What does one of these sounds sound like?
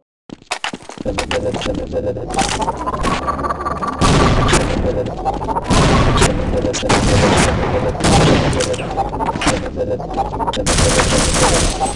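An energy weapon hums and whines loudly as it fires a beam.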